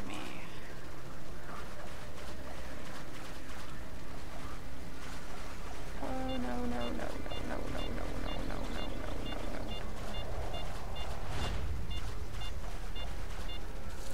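Tall dry reeds rustle and swish as someone pushes through them.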